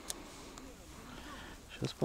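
A fishing reel clicks softly as line is wound in.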